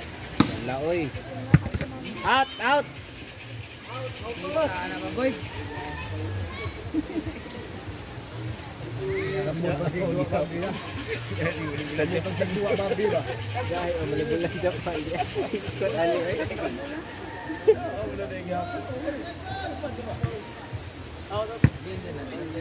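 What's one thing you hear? A ball is struck with sharp thumps.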